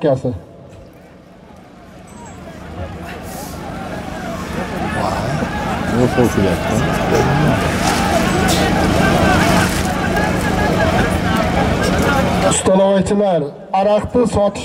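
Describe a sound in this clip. A large crowd of men chatters and shouts outdoors, growing louder.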